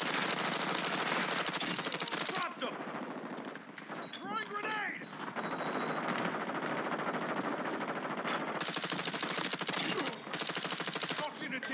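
A rifle fires in shots and bursts.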